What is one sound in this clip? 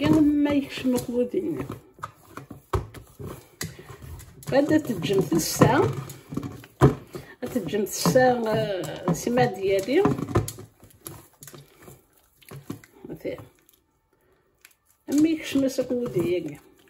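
Hands knead soft dough with quiet squelches and pats.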